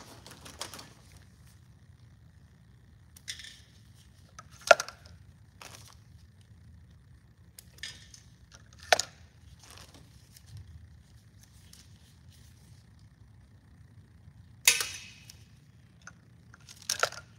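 Plastic pump caps click and snap onto bottles.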